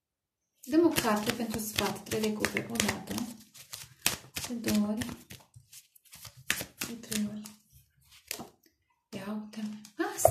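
Cards are shuffled and riffled by hand.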